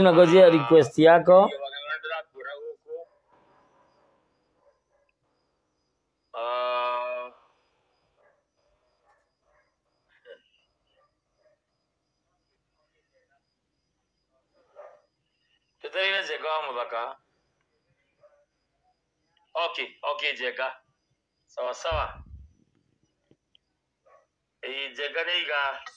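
A man speaks calmly into a nearby microphone, in short bursts with pauses.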